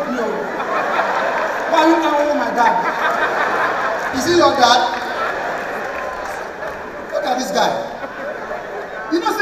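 A man speaks with animation into a microphone, heard over loudspeakers in a large hall.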